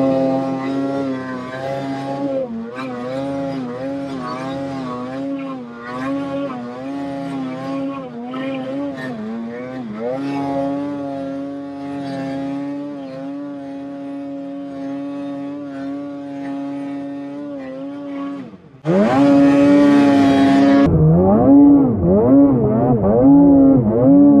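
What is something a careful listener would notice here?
A snowmobile engine roars and revs up and down close by.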